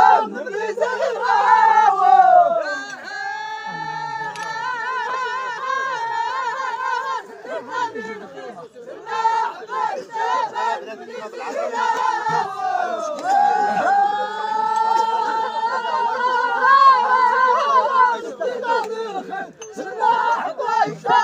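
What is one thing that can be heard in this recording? A chorus of men sings together in long, drawn-out chanted lines outdoors.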